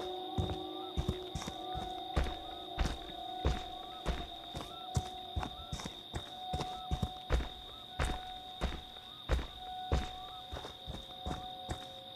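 Heavy footsteps crunch on leaves and dirt at a steady walking pace.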